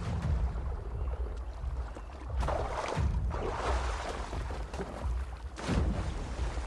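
A swimmer splashes through water.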